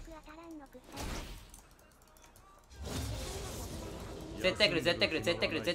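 Game fighting effects whoosh and clash.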